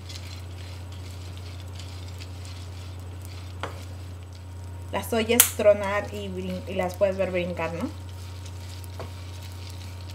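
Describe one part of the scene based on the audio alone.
A wooden spoon scrapes and stirs seeds in a frying pan.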